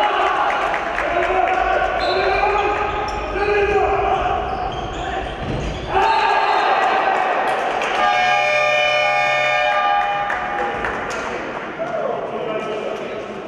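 A handball bounces and thumps on the floor.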